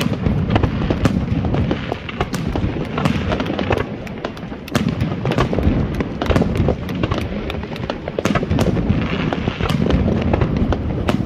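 Firework shells burst with loud booms.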